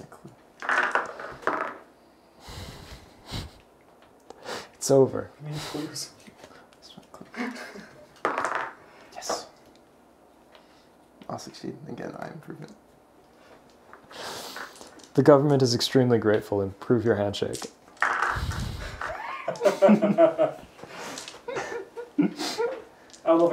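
Game pieces click and tap on a table.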